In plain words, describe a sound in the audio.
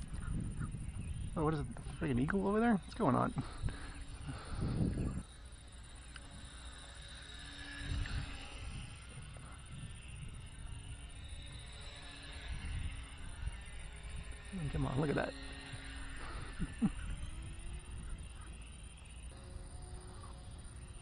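A small model airplane's motor whines overhead.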